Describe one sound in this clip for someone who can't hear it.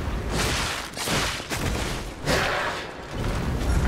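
Blades swing and whoosh through the air.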